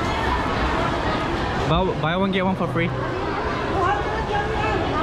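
A crowd of people chatters all around under a large echoing roof.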